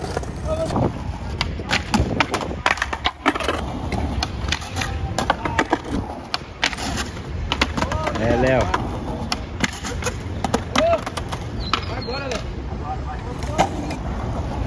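A skateboard clacks and grinds on concrete ledges.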